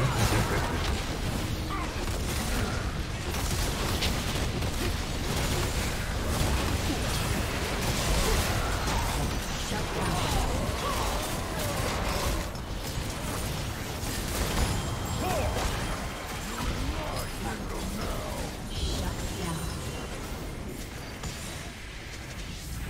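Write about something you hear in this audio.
Spell effects whoosh, crackle and burst in a video game battle.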